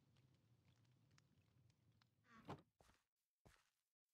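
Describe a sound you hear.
A wooden chest lid thuds shut.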